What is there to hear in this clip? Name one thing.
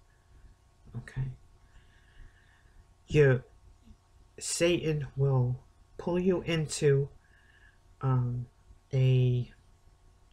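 An older woman speaks calmly and close to the microphone, in short phrases with pauses.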